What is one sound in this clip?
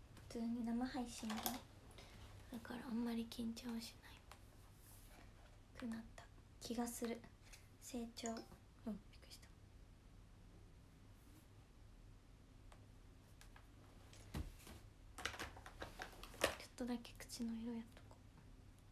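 A young woman talks casually and close up, with pauses.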